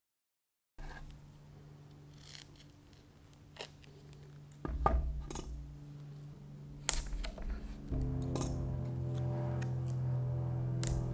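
Tape is peeled and torn off a roll.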